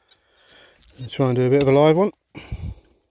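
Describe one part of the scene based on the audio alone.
A metal detector gives a short, warbling beep.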